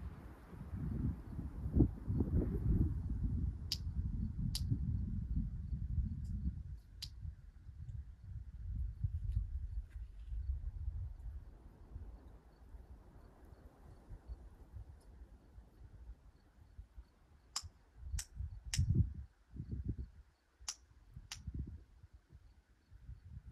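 Wind blows across open country, rumbling against the microphone.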